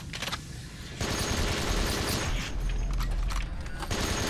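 A machine gun fires in a rapid stream of shots.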